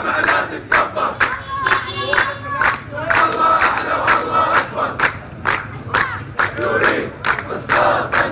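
A crowd of men beat their chests in a steady rhythm.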